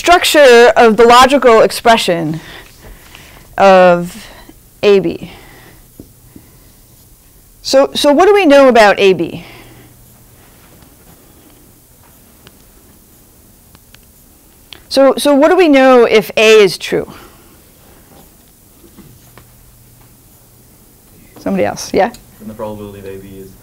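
A young woman speaks calmly, pausing between phrases.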